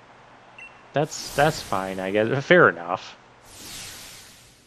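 A loud whoosh sweeps past.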